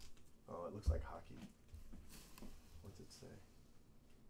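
A plastic sleeve crinkles.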